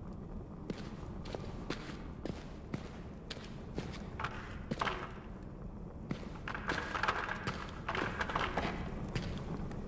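Footsteps thud slowly on a stone floor.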